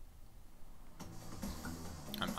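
Upbeat electronic game music starts playing loudly.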